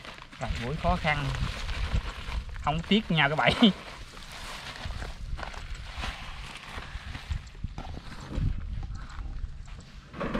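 A plastic sack rustles and crinkles.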